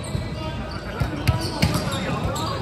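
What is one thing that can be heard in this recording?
A volleyball is struck with loud slaps that echo.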